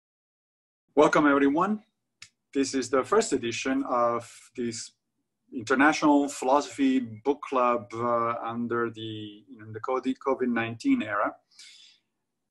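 A middle-aged man talks calmly and closely into a microphone over an online call.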